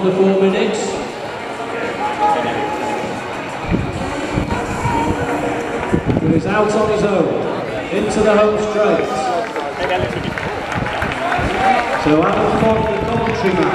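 A small crowd cheers and shouts outdoors.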